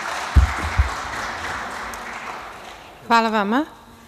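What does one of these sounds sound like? Scattered applause sounds in a large hall and fades away.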